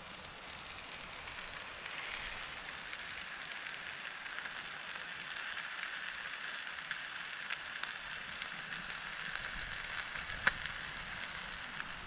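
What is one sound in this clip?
A small fire crackles and pops.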